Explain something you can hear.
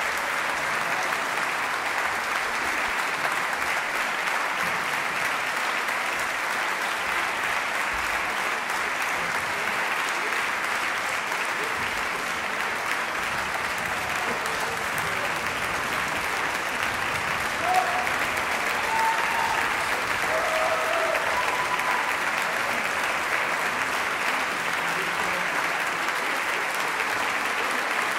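A large audience applauds steadily in a big echoing concert hall.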